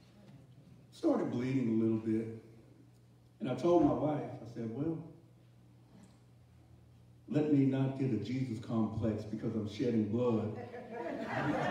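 A man preaches with animation through a microphone in an echoing hall.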